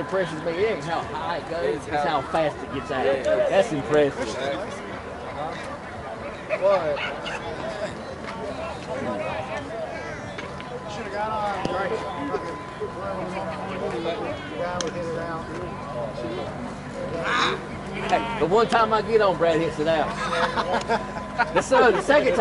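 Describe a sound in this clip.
Several men talk and call out across an open outdoor field.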